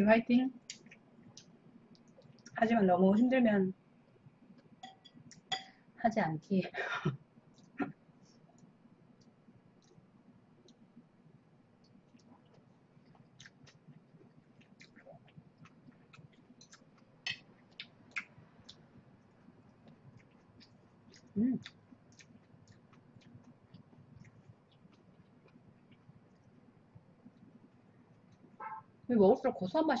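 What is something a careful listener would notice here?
A young woman chews and slurps noodles close to a microphone.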